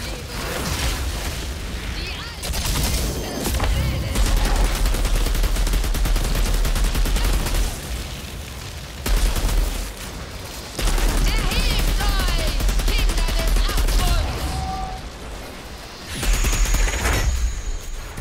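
Energy blasts explode with a crackling boom.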